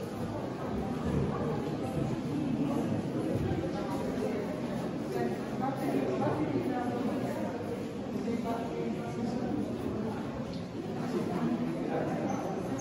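Many people talk at once, a steady murmur in an echoing hall.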